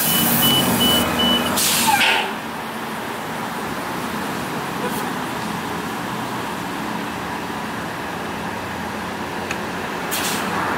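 A bus engine idles with a steady low rumble nearby.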